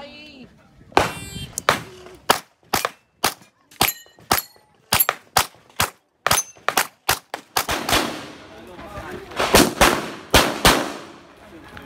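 A pistol fires quick shots outdoors.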